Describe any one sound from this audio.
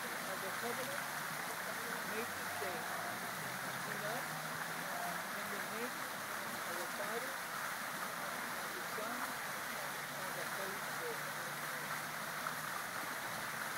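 A man speaks calmly at a short distance.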